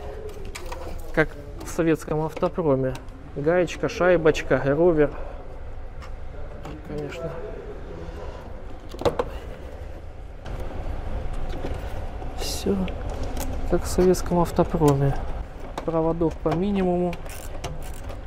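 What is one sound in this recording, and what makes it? A man speaks calmly and close by, explaining.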